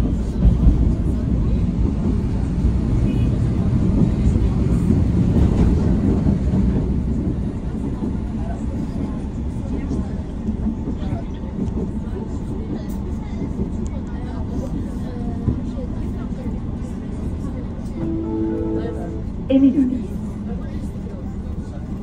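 Traffic rumbles steadily along a busy road nearby.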